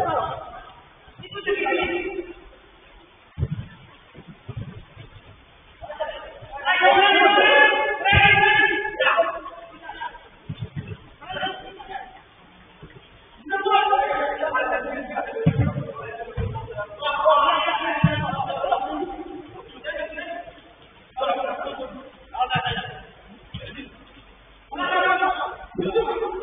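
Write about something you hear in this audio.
Men call out and shout to each other during a game, heard from a distance.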